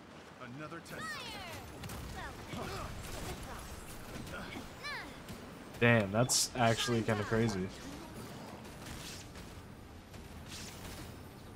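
Magical blasts and bursts ring out in a fight.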